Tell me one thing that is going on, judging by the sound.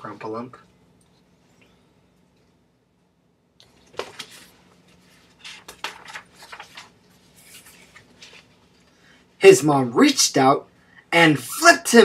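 A man reads aloud close to a microphone.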